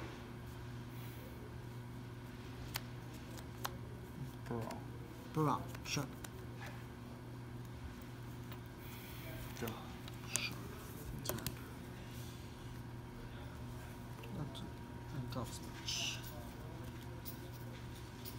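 Playing cards slide and tap on a soft mat.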